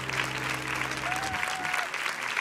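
A piano plays sustained chords.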